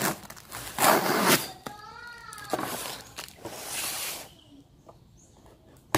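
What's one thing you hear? A cardboard box slides and scrapes across a wooden table.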